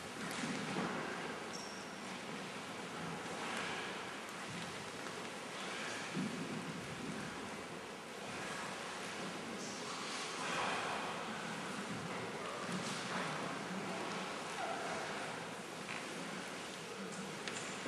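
Bodies shift and rub on a wooden floor in an echoing hall.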